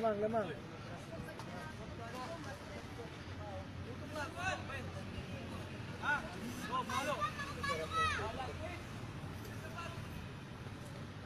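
Young players shout and call out across an open outdoor field.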